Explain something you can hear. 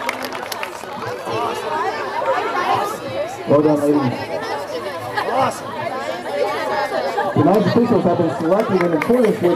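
A crowd chatters and calls out.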